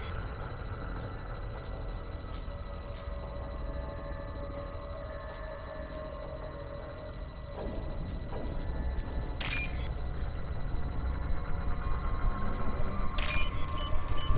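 Short electronic clicks tick in a steady run.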